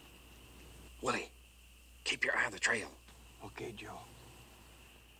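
A man speaks in a low, tense voice nearby.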